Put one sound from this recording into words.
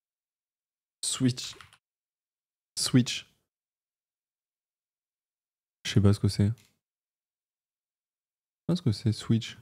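A young man speaks into a close microphone in short bursts, with animation.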